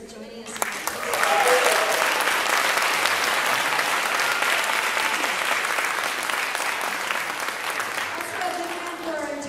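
A large audience applauds and cheers in an echoing hall.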